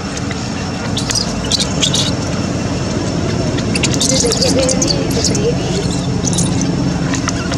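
A baby monkey squeals in short high cries.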